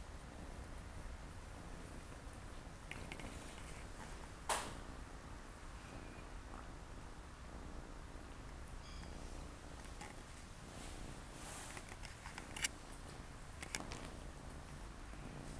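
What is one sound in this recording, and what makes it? Cats scuffle and rustle against a leather cushion.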